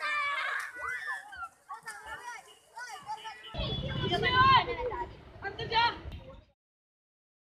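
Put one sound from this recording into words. Water splashes as children play in it.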